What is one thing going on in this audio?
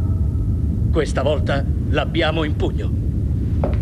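A middle-aged man speaks urgently, close by.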